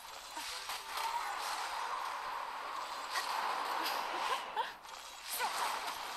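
Magic attacks whoosh and burst with bright chimes.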